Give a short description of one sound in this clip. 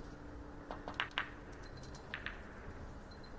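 Billiard balls click together on a table.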